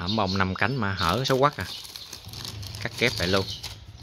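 A plastic sheet rustles as a hand presses against it.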